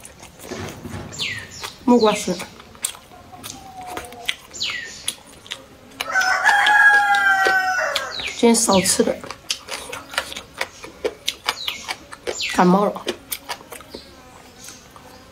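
A young woman chews food with wet smacking sounds close to the microphone.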